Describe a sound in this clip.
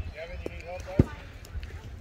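A ball smacks sharply into a leather glove.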